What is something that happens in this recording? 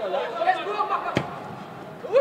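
A ball is struck hard with a thump.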